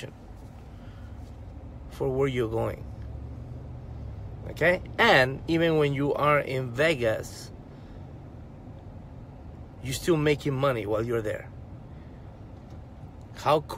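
A car engine hums low and steadily inside the cabin.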